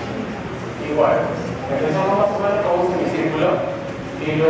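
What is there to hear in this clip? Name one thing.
A man speaks calmly to an audience in a large hall.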